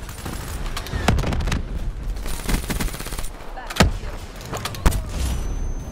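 An automatic rifle fires bursts of shots.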